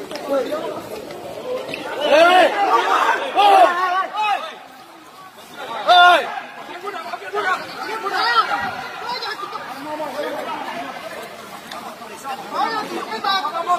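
Men shout angrily close by and over one another.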